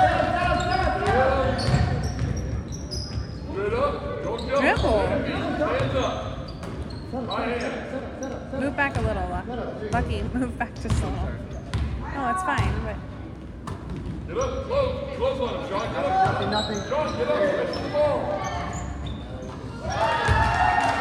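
Young players shout and call out to each other in a large echoing gym.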